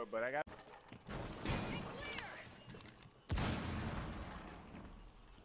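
A loud explosion blasts through a wall.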